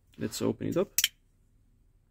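A folding knife blade snaps open with a sharp click.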